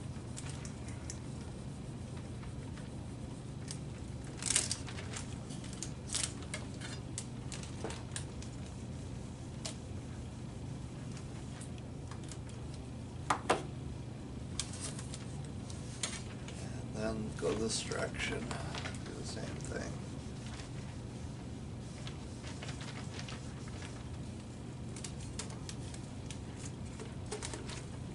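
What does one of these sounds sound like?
A heat gun blows with a steady whirring hum.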